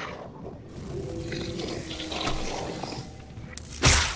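A monster growls close by.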